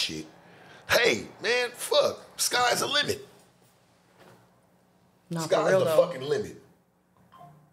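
A man talks loudly and animatedly into a close microphone.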